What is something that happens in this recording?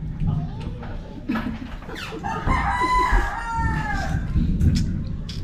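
A young man chews food with soft smacking sounds.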